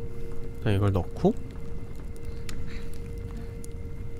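A fire crackles softly in a hearth.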